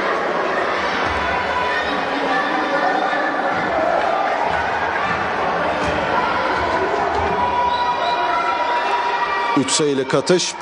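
Sneakers squeak on a hardwood court in a large echoing hall.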